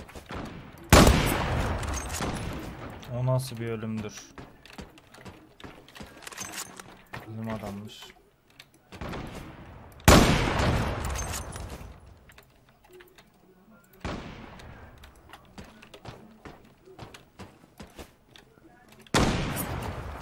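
A sniper rifle fires loud shots that boom and echo away.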